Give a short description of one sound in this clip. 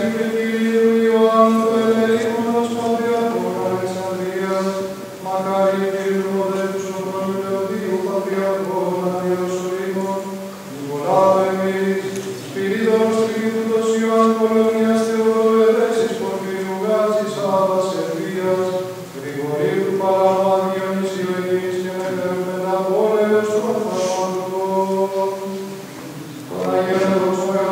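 A choir of men chants slowly in a resonant, echoing hall.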